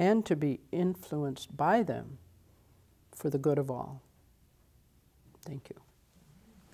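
An older woman speaks calmly into a microphone, with pauses.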